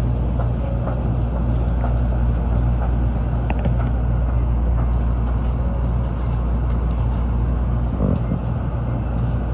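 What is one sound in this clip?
Footsteps of many people walk past on a hard floor.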